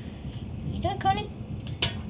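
A finger taps on a metal vent grille.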